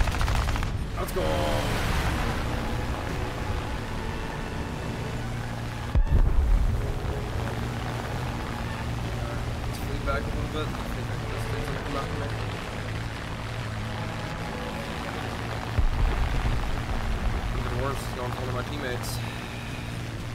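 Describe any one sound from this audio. A man speaks through a nearby microphone.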